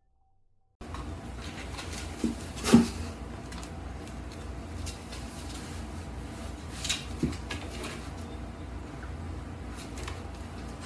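Cardboard rustles and scrapes as a cat squeezes into a small box.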